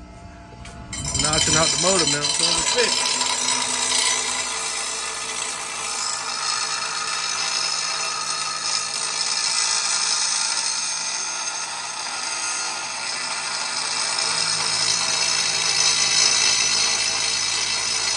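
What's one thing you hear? A bench grinder whirs steadily as metal is ground against it with a harsh, hissing scrape.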